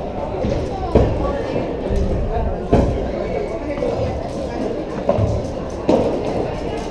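Padel rackets strike a ball with sharp pops in a large echoing hall.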